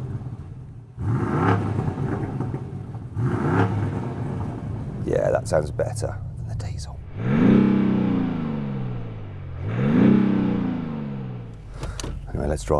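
A sports car engine revs hard and roars through its exhaust.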